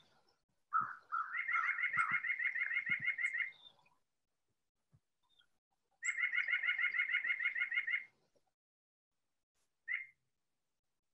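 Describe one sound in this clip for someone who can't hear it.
A bird's rapid nasal chatter plays through a loudspeaker in short bursts.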